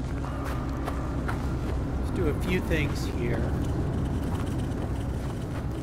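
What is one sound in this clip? Footsteps crunch quickly over dry, rocky ground.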